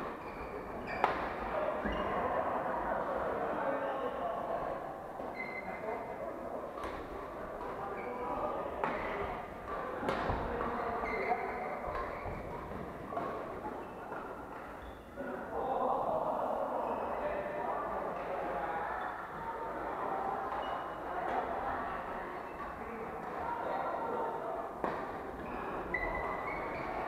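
Badminton rackets strike shuttlecocks with sharp pops in a large echoing hall.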